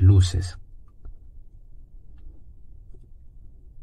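A brush strokes softly across a canvas.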